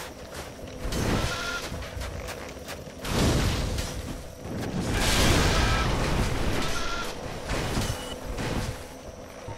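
Swords clash and strike in combat.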